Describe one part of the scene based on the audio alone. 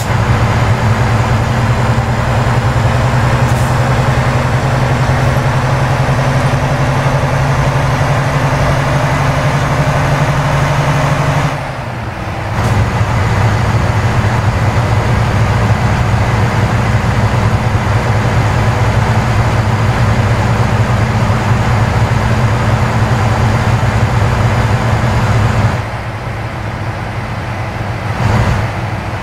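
Tyres roar on the road.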